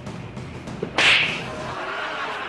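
A hand slaps a face with a sharp smack.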